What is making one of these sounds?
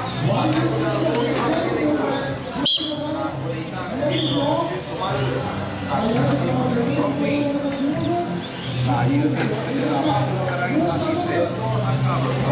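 Small electric toy car motors whir.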